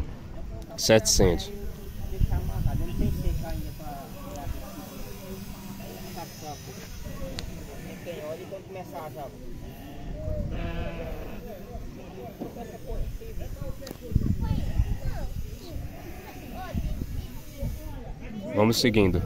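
Goats bleat close by.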